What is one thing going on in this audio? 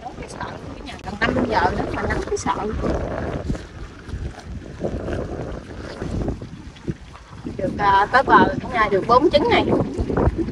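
A young woman talks with animation close by, outdoors.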